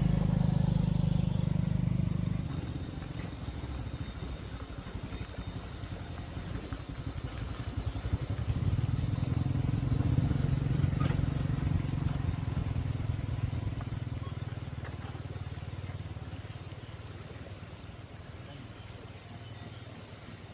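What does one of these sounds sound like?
Motorcycle engines rumble close by, growing louder and then slowly fading.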